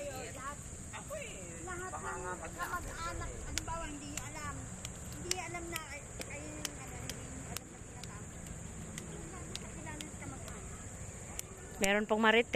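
Several women chat with each other nearby, outdoors.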